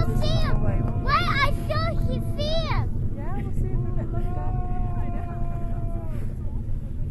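A crowd of men and women cheers and whoops excitedly outdoors.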